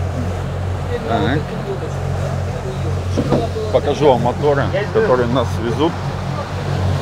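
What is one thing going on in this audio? A man talks nearby with animation.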